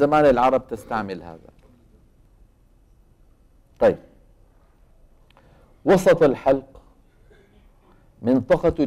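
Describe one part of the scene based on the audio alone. An elderly man speaks calmly through a microphone, pausing between words.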